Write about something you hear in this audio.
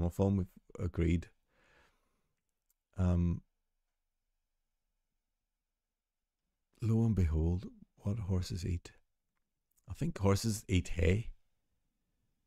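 A middle-aged man speaks calmly and thoughtfully into a close microphone, in short bursts with pauses.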